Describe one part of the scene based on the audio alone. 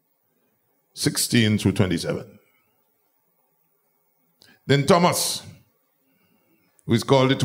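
A middle-aged man preaches with emphasis into a microphone, in bursts with pauses.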